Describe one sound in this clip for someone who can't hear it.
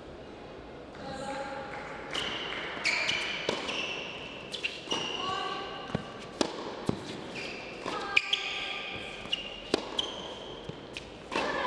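Tennis shoes squeak sharply on a hard court.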